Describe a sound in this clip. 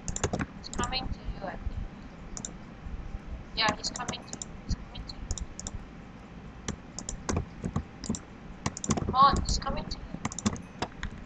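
A game menu makes short clicking sounds as items are opened and selected.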